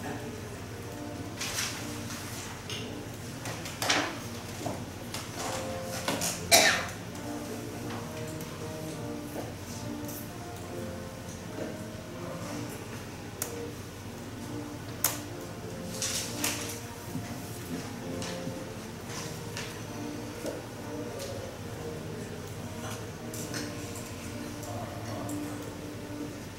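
A middle-aged woman speaks calmly and clearly close to a microphone.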